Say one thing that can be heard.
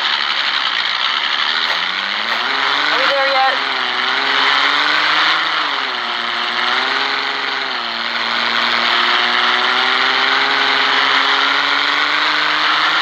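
A car engine revs and hums as the car speeds up and slows down.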